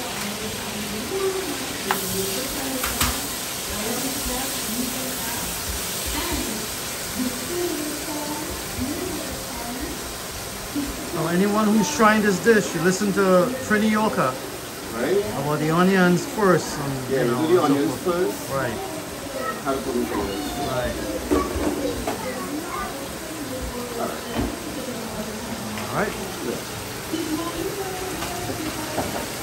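Food sizzles gently in a hot pan.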